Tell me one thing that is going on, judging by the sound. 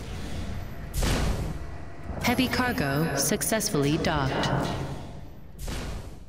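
Heavy footsteps clank on a metal grating.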